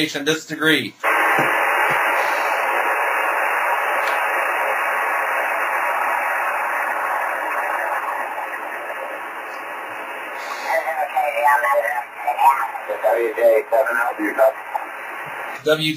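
Static hisses steadily from a radio receiver.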